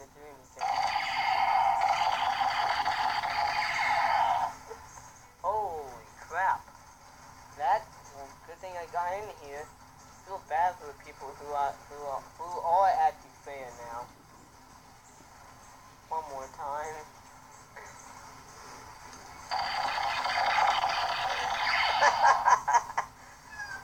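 A phone plays tinny sound through its small speaker.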